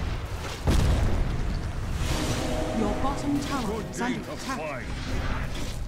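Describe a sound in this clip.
Game battle effects clash and burst in quick succession.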